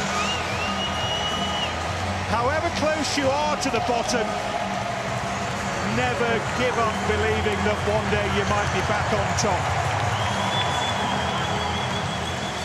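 A large stadium crowd cheers and applauds loudly.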